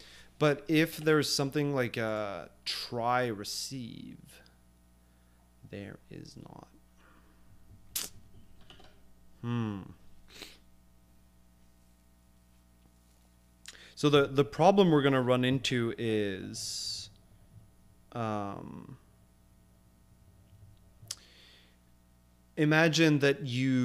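A man talks calmly into a close microphone, in bursts with pauses.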